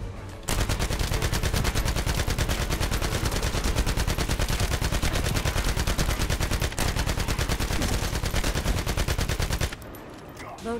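A rapid-fire gun shoots in a long, fast burst.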